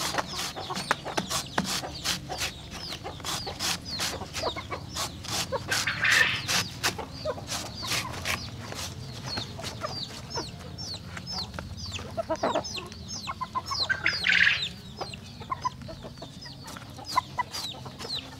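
A knife chops rapidly against a board.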